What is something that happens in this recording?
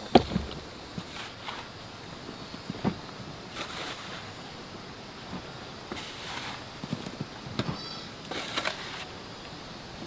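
A shovel scrapes and scoops damp soil.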